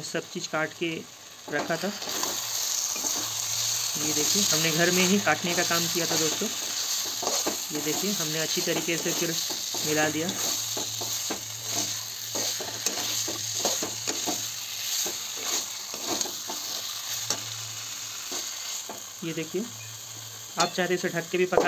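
A spatula scrapes and clatters against a metal pan.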